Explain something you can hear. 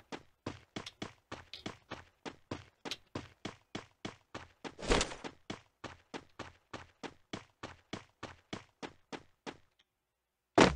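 Footsteps run quickly and evenly over a hard surface.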